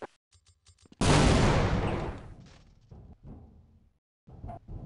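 An explosion booms and rumbles away with echo.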